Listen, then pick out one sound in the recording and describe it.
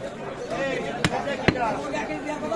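A cleaver chops into meat on a wooden block with sharp thuds.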